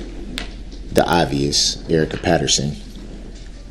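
A man speaks in short bursts.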